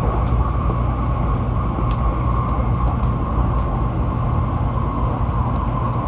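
A passing train rushes by close outside the window.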